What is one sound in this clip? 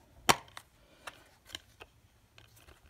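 A plastic disc case clicks and rattles as it is handled.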